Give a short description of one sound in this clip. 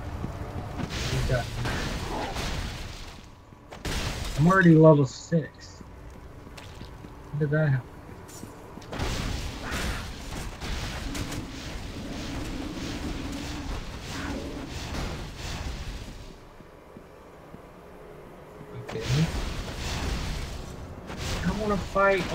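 A young man talks into a microphone, close up, now and then.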